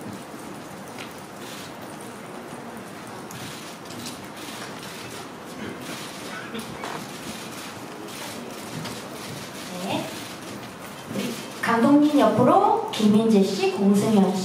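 A crowd murmurs in a large hall.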